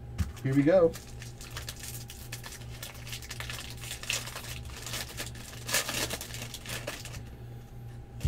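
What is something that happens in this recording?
Foil wrapping crinkles and tears as a pack is opened.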